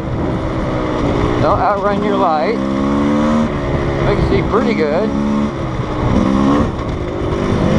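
A motorbike engine roars and revs over a bumpy dirt track.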